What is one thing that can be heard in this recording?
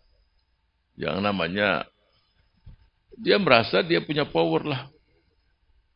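An elderly man speaks slowly and earnestly into a microphone.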